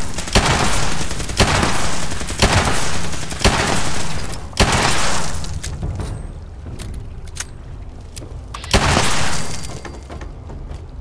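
Loud gunshots fire one after another, each booming and echoing.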